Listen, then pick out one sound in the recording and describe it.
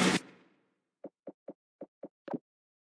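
Soft menu clicks tick in quick succession.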